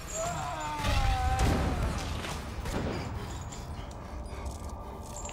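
A young woman moans and gurgles in pain close by.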